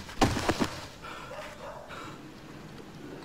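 A young man groans and cries out in pain.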